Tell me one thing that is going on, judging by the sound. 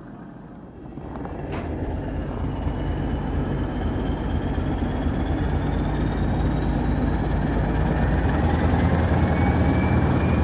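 A train's wheels rumble and clatter on the rails, heard from on board.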